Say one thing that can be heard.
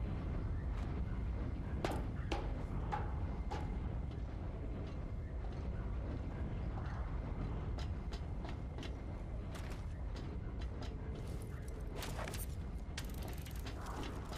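Footsteps clank on metal stairs and grating.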